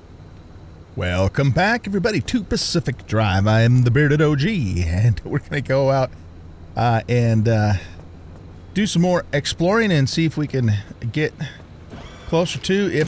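An older man talks calmly through a headset microphone.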